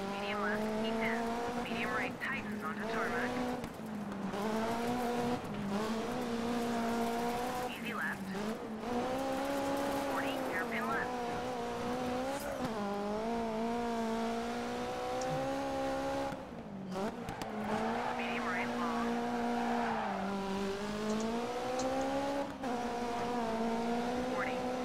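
A rally car engine revs hard, rising and falling as gears change.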